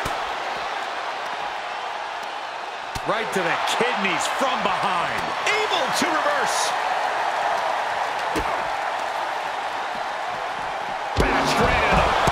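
Heavy blows and body slams thud.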